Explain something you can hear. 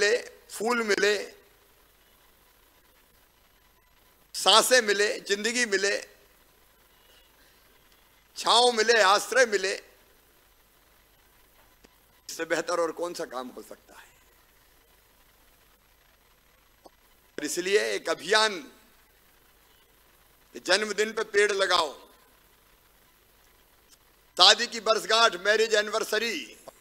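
A middle-aged man speaks forcefully through a microphone and loudspeakers, in short bursts with pauses.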